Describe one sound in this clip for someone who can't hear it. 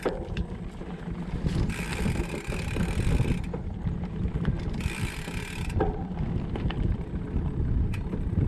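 A bicycle chain rattles and clicks.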